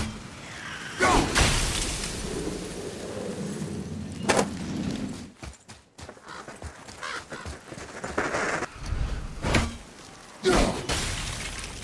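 A loud magical burst whooshes.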